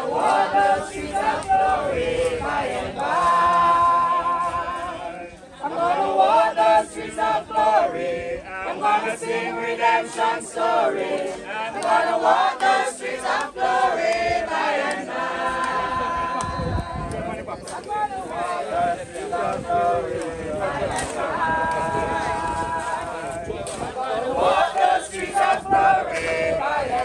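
A crowd of men and women sing together outdoors.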